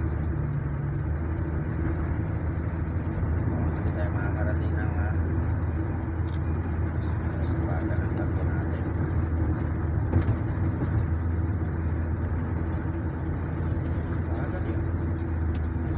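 A car engine hums steadily from inside the moving car.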